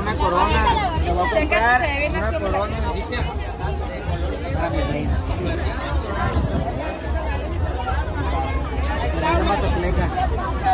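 A young woman talks excitedly up close.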